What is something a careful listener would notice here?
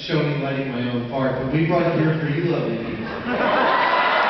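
A man speaks into a microphone in a large hall, amplified through loudspeakers.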